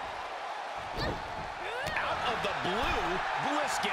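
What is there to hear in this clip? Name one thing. A heavy thud lands on a wrestling ring mat.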